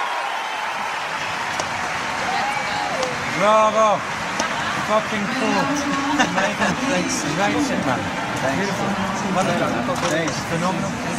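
Several men talk and laugh close by.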